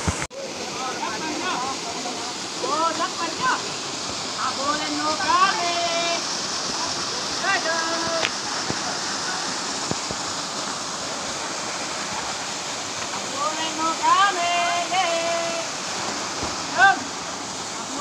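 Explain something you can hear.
Young men and boys shout and call out across the water.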